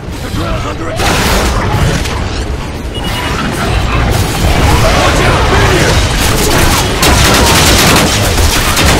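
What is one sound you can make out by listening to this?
Explosions rumble and boom loudly.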